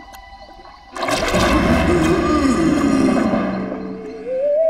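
Water splashes as a creature rises out of a pond.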